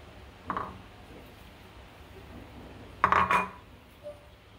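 A spatula scrapes food against a plastic bowl.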